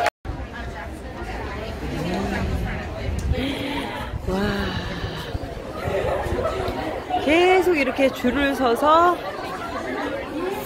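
A crowd of young women chatters nearby outdoors.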